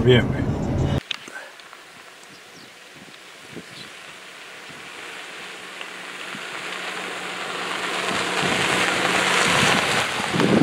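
Car tyres crunch over gravel, growing louder as the car approaches.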